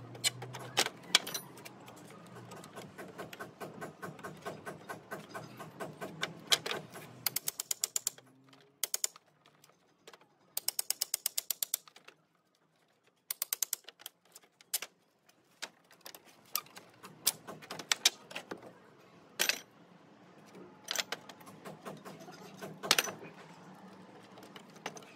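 A pry bar clanks against wood and nails.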